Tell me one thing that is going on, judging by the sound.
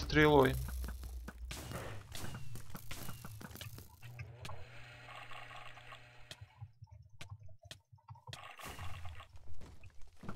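A sword strikes a large creature with sharp hits.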